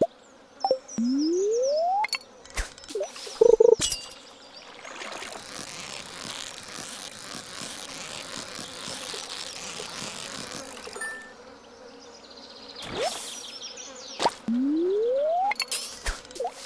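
A fishing rod casts with a rising whoosh.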